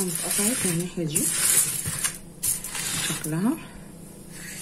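Aluminium foil crinkles.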